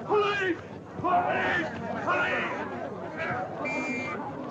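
An elderly man shouts loudly.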